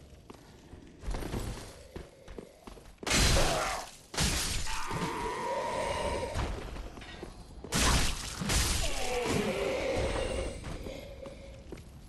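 A sword slashes and strikes with loud bursts.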